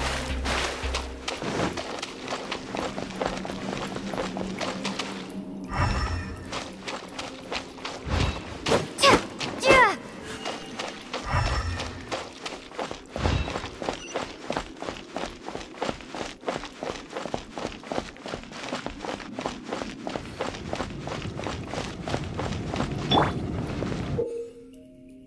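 Footsteps patter quickly and steadily.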